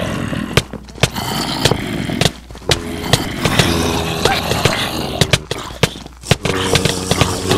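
Sword blows strike in a quick, sharp series.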